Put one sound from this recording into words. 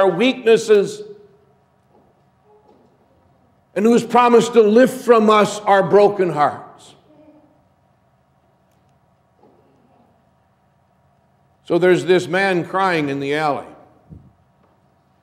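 A middle-aged man speaks slowly and expressively through a microphone in a large echoing hall, with long pauses.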